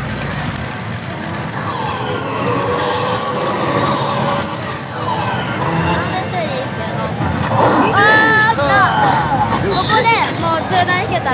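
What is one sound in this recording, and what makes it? A slot machine plays loud electronic music and jingles.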